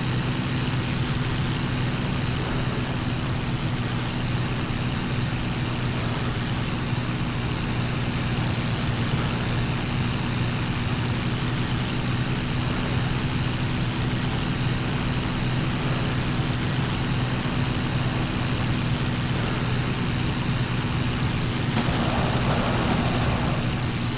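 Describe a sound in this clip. A propeller aircraft engine drones loudly and steadily from up close.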